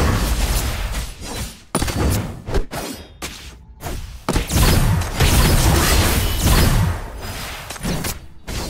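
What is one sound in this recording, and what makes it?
Battle sound effects of clashing blows and bursts of magic ring out in quick succession.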